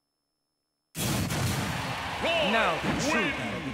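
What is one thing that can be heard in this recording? A sword swings with a sharp whoosh.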